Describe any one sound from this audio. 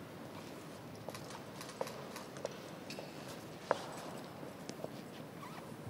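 Boots and sabres click and tap on a hard floor in a large echoing hall.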